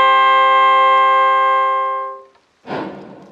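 A reed mouth organ plays a steady, bright chord.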